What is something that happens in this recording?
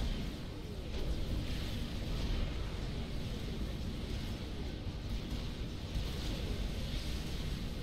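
Low rumbling battle effects play steadily, with soft whooshing bursts.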